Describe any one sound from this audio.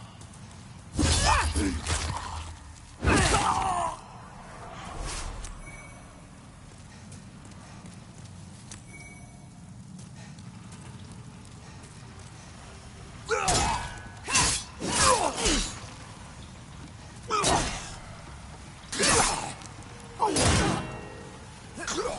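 Blades slash and strike with sharp, heavy hits.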